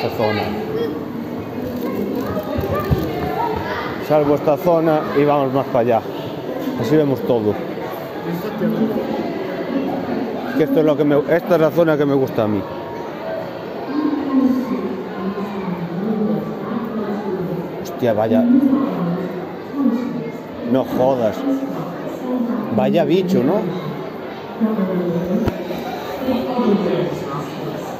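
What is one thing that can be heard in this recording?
Men and women chatter nearby in a large echoing hall.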